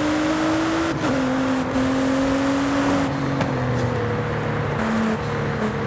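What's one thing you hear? A race car engine drops in pitch as gears shift.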